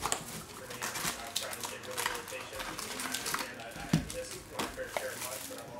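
Cardboard and foil packs rustle and scrape as hands pull them from a box.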